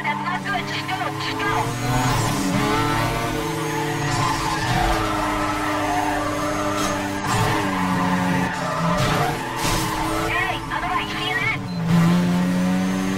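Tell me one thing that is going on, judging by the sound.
A car engine roars at high revs, rising and falling as the gears shift.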